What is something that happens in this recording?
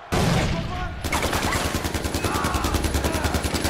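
An assault rifle fires a rapid burst of shots.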